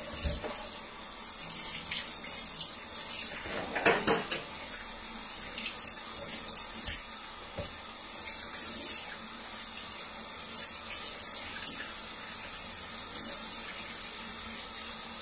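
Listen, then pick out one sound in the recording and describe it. Hands rub and scrub a dish under running water.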